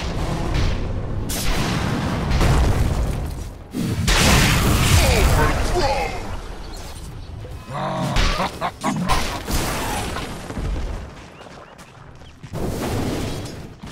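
Blows and magic blasts clash in a fight.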